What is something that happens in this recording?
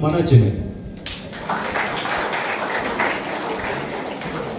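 A crowd murmurs and rustles in the hall.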